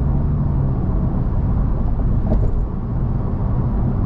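A car passes close by on the highway.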